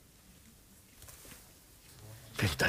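A middle-aged man speaks with amusement close by.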